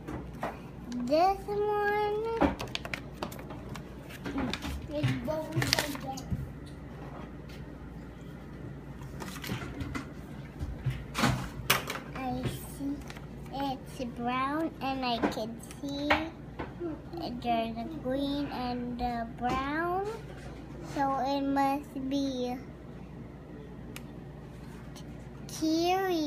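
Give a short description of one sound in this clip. A young girl talks softly and close by, in a high voice.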